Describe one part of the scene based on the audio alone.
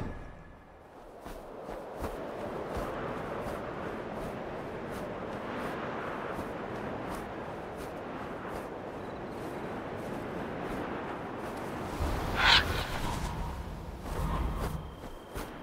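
Wind rushes steadily past a flying eagle.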